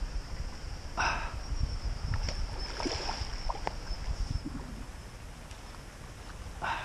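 A fish splashes in the water nearby.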